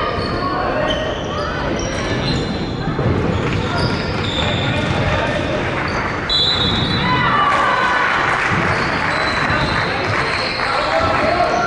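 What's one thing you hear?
A crowd of children and adults chatters and calls out in a large echoing hall.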